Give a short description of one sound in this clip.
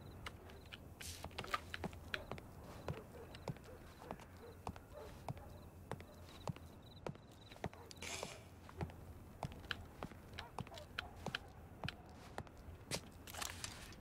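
Footsteps tap steadily on a hard roof.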